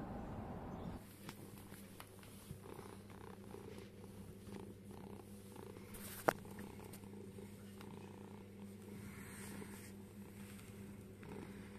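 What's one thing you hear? A cat purrs softly up close.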